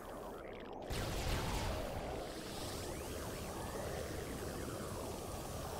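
A fiery explosion booms and crackles.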